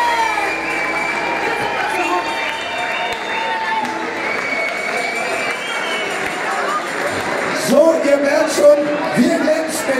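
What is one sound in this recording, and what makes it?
A large band plays lively music through loudspeakers.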